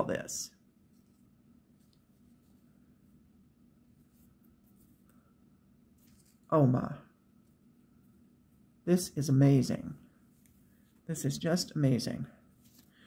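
Bundles of thread rustle softly.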